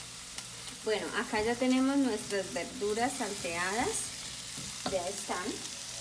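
Vegetables sizzle softly in a frying pan.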